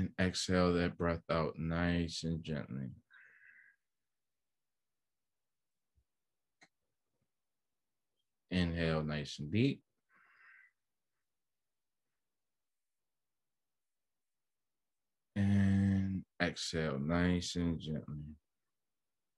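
A man speaks calmly through an online call, pausing between phrases.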